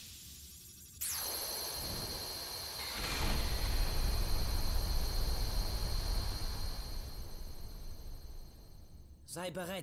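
A bright magical chime rings out and shimmers before slowly fading.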